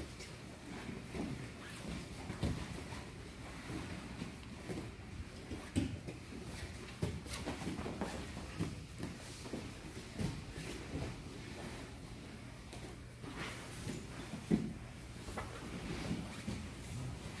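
Bodies thump and shuffle on a padded mat.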